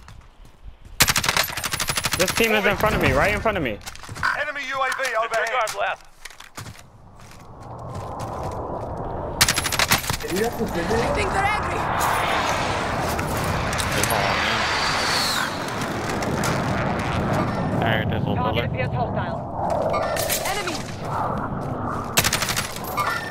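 A rifle fires loud bursts of gunshots.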